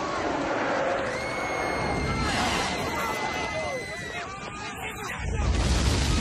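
A crowd of people shout and scream in panic.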